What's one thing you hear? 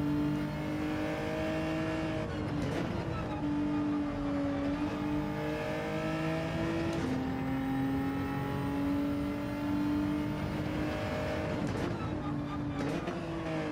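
A race car engine roars steadily, rising and dropping in pitch as the gears shift.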